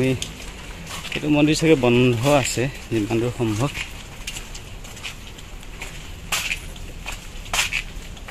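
Footsteps splash on a wet path.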